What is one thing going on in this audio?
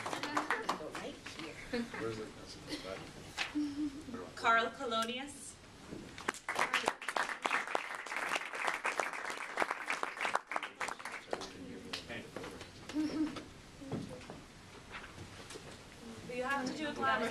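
Men and women chat and laugh nearby.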